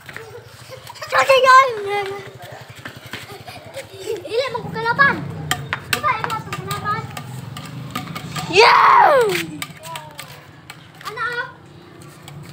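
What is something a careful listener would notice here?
Young children shout and squeal playfully nearby, outdoors.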